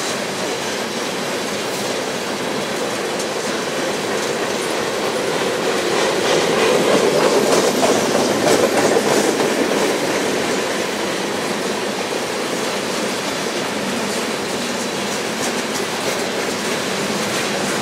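Steel wheels squeal faintly against the rails.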